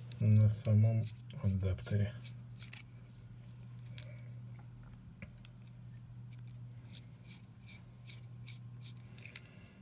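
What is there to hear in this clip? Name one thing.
A small screwdriver clicks and scrapes against tiny metal screws.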